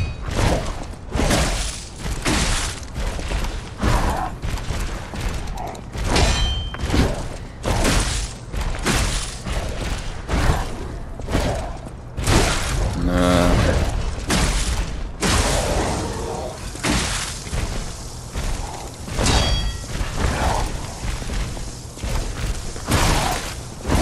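Heavy blows thud into a hulking foe.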